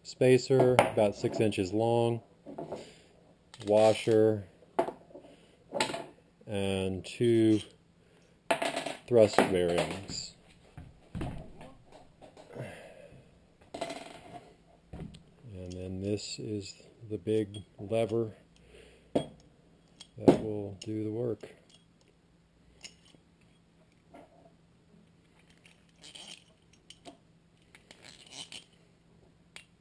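Metal parts clink and tap together as they are handled.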